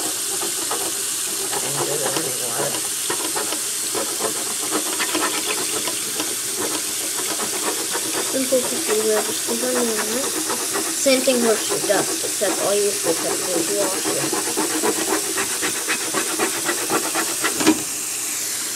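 Fingers rub and click across bumpy plastic studs.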